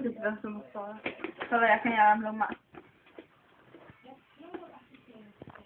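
Paper rustles and crinkles in a young woman's hands.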